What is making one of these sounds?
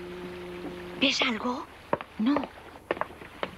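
A young boy calls out nearby.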